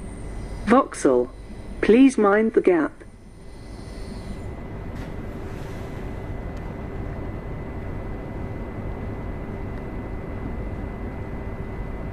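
A train's interior hums and rumbles steadily.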